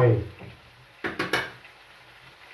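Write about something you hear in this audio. A plate clinks against other plates.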